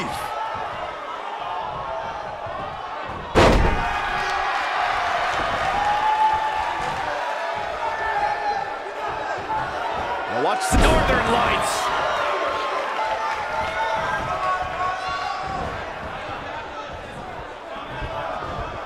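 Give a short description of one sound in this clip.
A large crowd cheers and chants throughout in an echoing arena.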